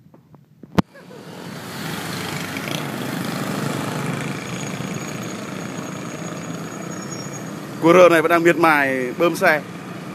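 Traffic hums steadily in the distance.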